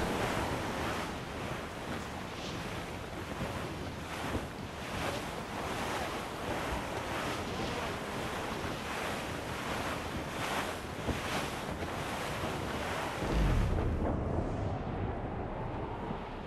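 Strong wind howls over a stormy sea.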